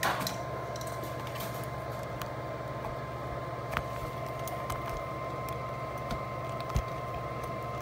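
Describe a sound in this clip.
Cables rustle and tap softly.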